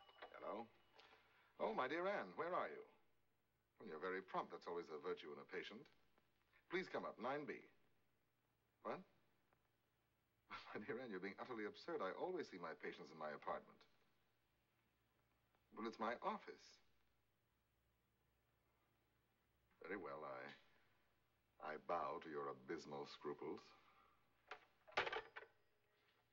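A man talks calmly into a telephone, pausing between phrases.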